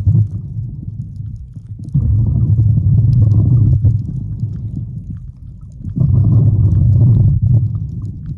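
A swimmer's fins kick and churn water underwater.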